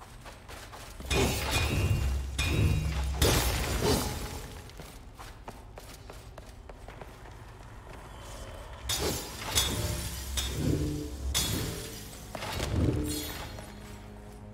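Sword blades slash and clash with deep booming impacts.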